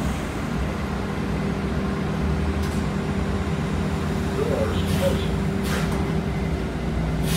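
A bus rattles and creaks as it moves.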